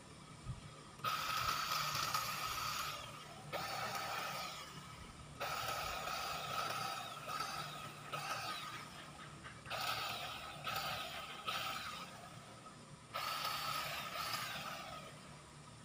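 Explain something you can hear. A battery hedge trimmer buzzes in short bursts as it cuts a low hedge.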